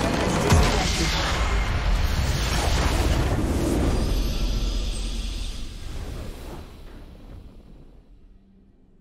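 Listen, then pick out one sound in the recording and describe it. A triumphant game fanfare swells and slowly fades away.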